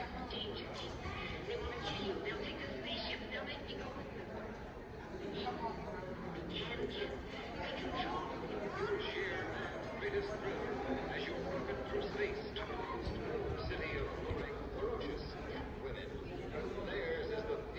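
Film sound plays through loudspeakers in a large hall.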